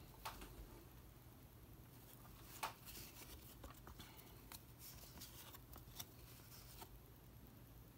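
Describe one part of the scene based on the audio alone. Trading cards slide and snap softly against each other as they are shuffled by hand.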